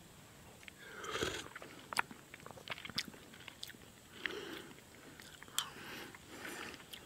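A man sips and slurps from a spoon.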